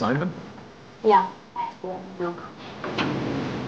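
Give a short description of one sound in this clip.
A woman speaks into a phone.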